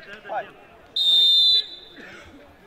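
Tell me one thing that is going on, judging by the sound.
A referee's whistle blows a long sharp blast.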